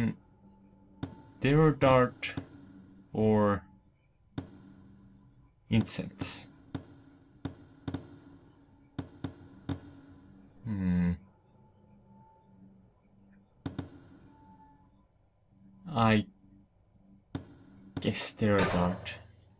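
Short menu clicks sound again and again.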